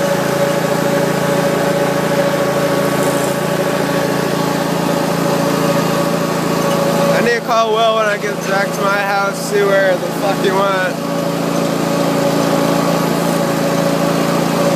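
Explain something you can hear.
A small engine hums steadily close by.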